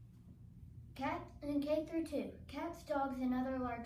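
A young girl speaks clearly and calmly close to a microphone.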